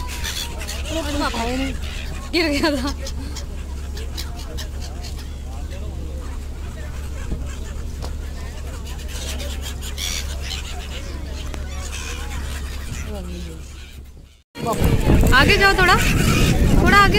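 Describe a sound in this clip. Seagulls cry loudly nearby.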